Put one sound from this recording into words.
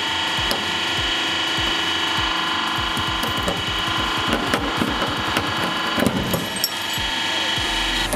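A metal padlock cracks and snaps as a press crushes it.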